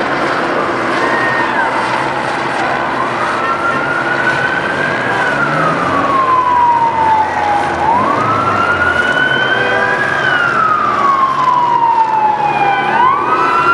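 Police sirens wail, rising and falling in pitch.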